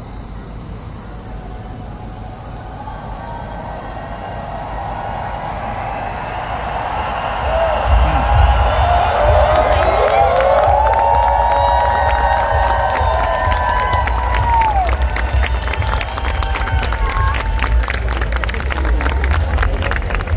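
A large crowd cheers and shouts outdoors, growing louder.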